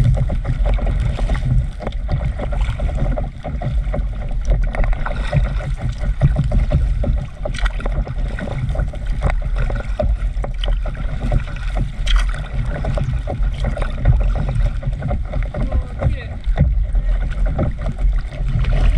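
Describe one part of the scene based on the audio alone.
Water splashes and laps against the hull of a small moving boat.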